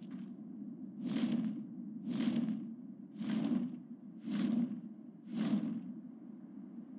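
Large wings flap with heavy whooshes in a steady series of beats.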